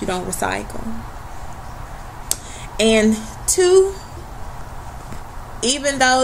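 A young woman speaks calmly and close to a laptop microphone, in short bursts.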